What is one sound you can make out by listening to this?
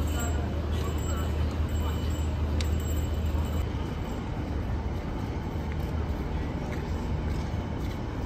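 Distant crowd voices murmur outdoors.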